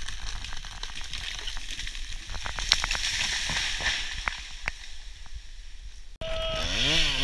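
A falling tree crashes through branches onto the ground.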